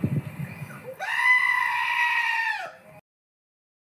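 A goat bleats loudly.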